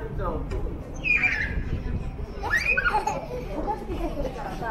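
A small child squeals and chatters close by.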